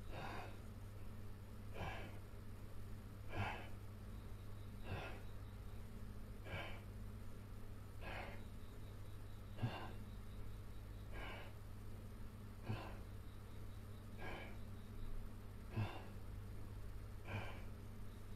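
A man exhales sharply with each effort in a steady rhythm.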